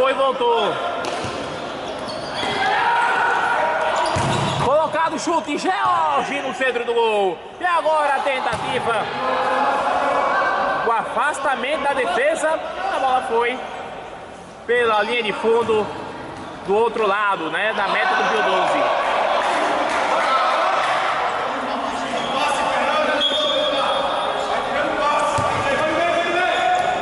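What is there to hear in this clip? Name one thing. Men shout and call out in an echoing hall.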